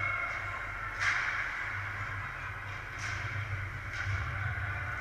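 A hockey puck cracks sharply against a stick or the boards now and then.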